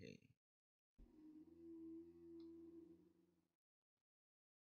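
A short video game sound effect plays.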